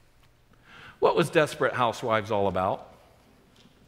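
A middle-aged man speaks with animation through a microphone in a large echoing hall.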